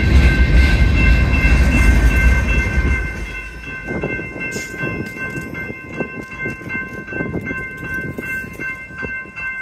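Railroad crossing bells ring steadily.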